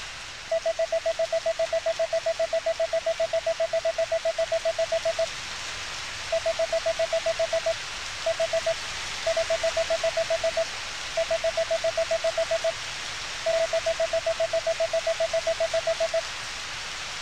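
Rapid electronic blips tick in quick bursts.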